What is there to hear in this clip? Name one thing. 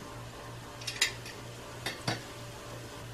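Metal tongs clink as they are set down.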